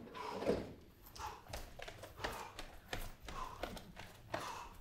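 Feet thump on a soft floor as a man hops.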